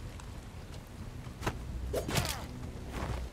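A blade slashes into a body.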